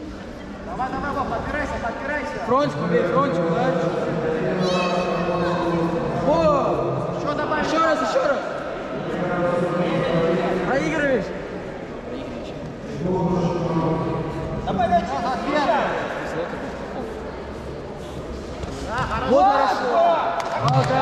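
Several men shout instructions loudly in a large echoing hall.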